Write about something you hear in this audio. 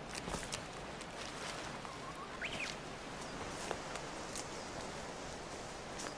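Footsteps crunch and rustle through dry leaves on the forest floor.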